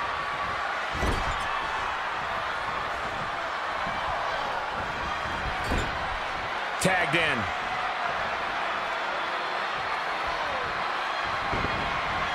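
Heavy blows thud as wrestlers strike each other.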